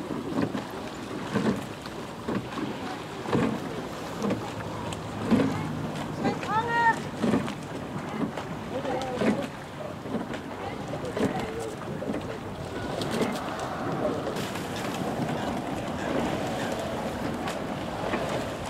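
Oars dip and splash rhythmically in water.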